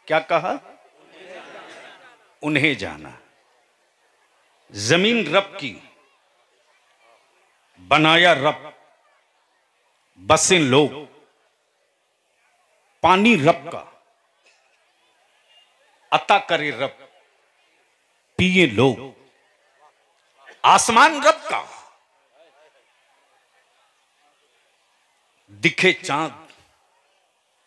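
A man speaks passionately through a loudspeaker, in short bursts with pauses.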